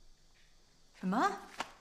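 A woman in uniform asks a short question calmly, close by.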